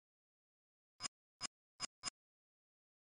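Short electronic beeps sound four times in quick succession.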